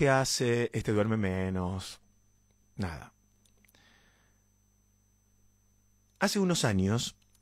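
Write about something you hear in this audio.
A young man sings close to a microphone.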